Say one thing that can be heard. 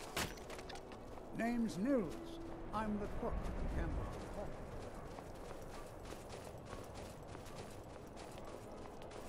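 Footsteps crunch over snowy stone.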